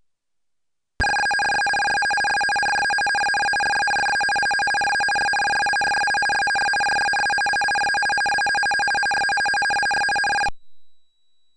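A video game's text printout gives off a steady, buzzy electronic beep.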